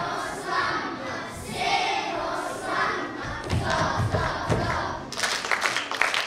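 A children's choir sings on stage.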